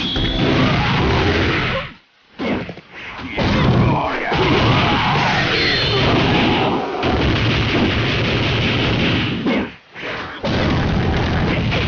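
Fire blasts roar and crackle.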